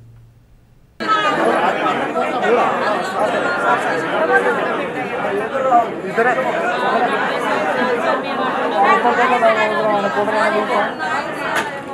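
Several people talk at once close by, in a murmuring crowd.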